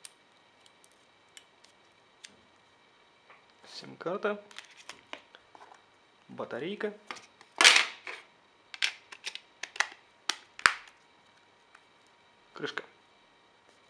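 Plastic clicks and snaps as a phone's back cover is fitted.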